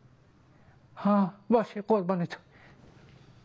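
A man speaks in a choked, tearful voice.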